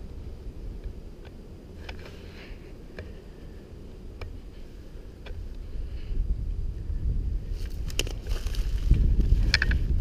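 Footsteps crunch on thin snow and dry leaves.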